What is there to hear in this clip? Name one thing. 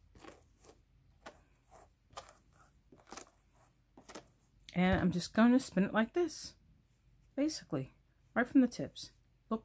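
Hands pull soft wool fibres apart with a faint rustle.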